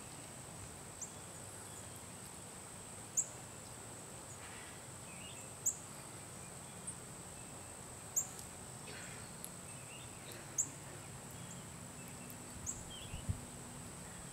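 A bird gives short, sharp chirps now and then.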